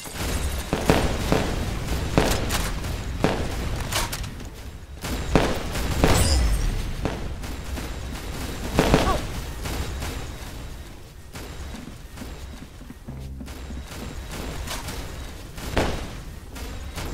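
Fireworks explode with loud crackling bangs.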